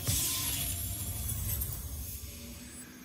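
A game chest opens with a bright magical shimmer.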